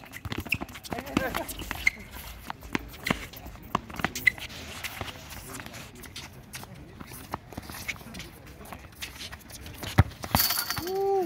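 A paddle hits a ball and the ball bounces on a hard court.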